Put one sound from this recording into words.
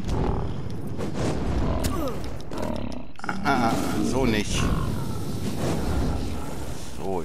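Heavy blows thud and clash as a fight rages.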